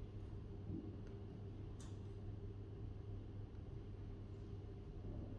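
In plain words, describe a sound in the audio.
Fingers tap softly on a laptop keyboard.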